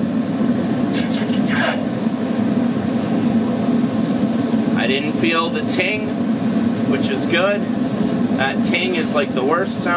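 Molten metal hisses as it pours into water.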